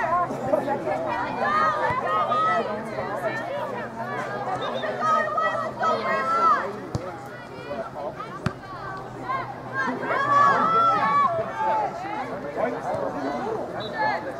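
A crowd of spectators cheers and shouts from outdoors across a field.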